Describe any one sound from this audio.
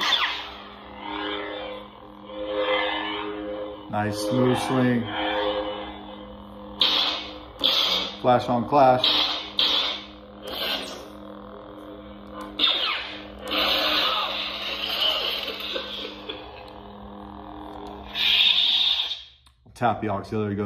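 A toy lightsaber hums steadily.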